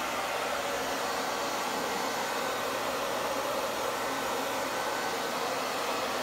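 A heat gun blows and whirs steadily close by.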